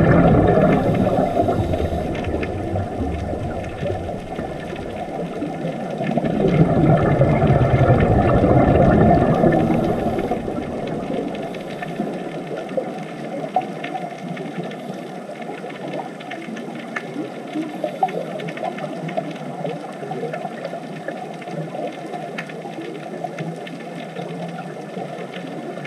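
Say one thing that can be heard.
Underwater, divers' breathing bubbles rumble and gurgle.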